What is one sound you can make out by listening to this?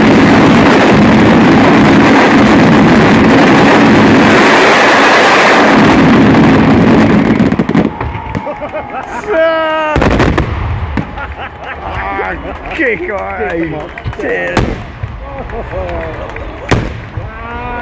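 Firework charges pop and crackle.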